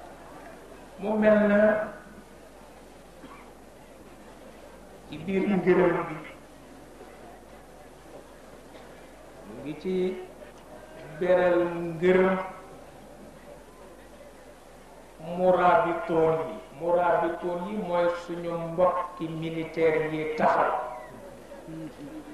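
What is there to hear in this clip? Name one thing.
An elderly man speaks slowly through a microphone and loudspeakers, with long pauses between phrases.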